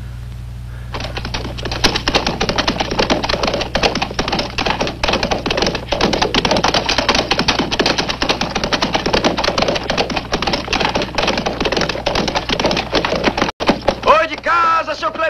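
Horses gallop over rough ground.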